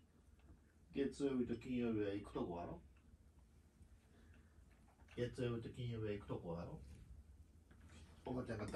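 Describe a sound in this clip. A man speaks gently up close.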